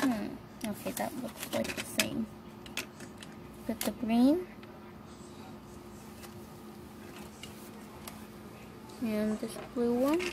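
Small plastic lids click and tap against a hard surface.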